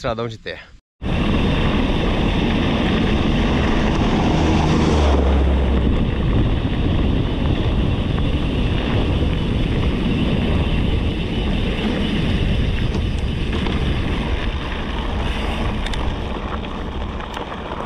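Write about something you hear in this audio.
Wind rushes past a microphone.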